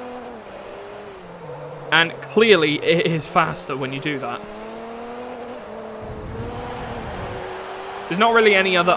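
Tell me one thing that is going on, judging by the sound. A racing car engine hums steadily, its pitch rising and falling.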